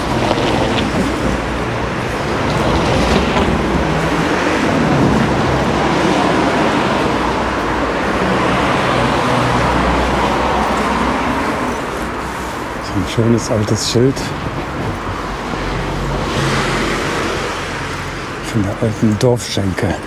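Cars drive past on a nearby road with a steady rushing hum.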